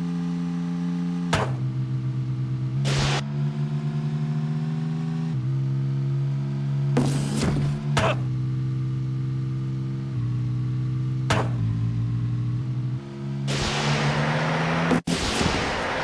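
A car engine roars steadily at high speed, its pitch stepping up and dropping as it shifts gears.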